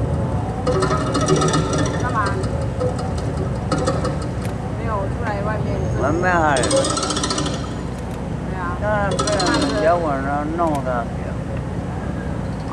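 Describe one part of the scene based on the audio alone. A zither is plucked in quick, ringing runs with sliding notes, heard through loudspeakers.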